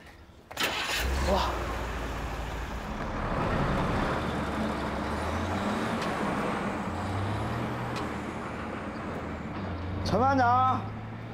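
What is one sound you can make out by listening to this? A truck engine rumbles steadily.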